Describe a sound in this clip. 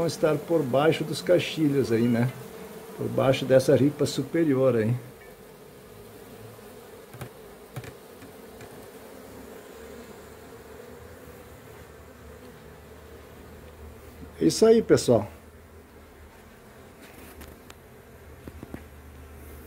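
Bees buzz softly close by.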